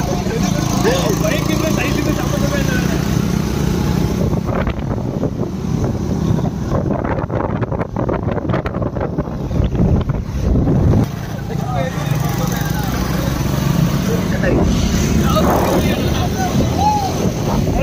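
Motorcycle engines hum steadily while riding.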